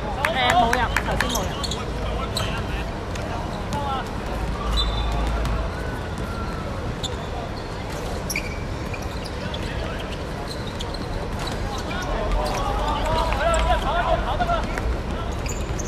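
Men shout to each other during a game outdoors.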